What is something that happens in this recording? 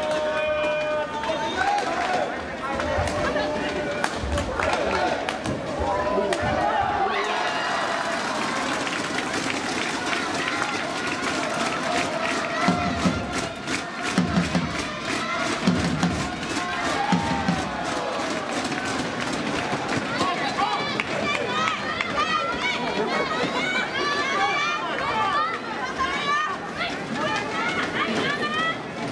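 A large crowd chatters and calls out in an echoing hall.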